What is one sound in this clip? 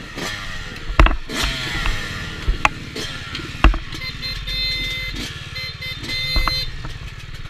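Thumps and knocks sound as a dirt bike jolts over rough, muddy ground.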